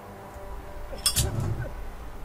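A lighter clicks and sparks.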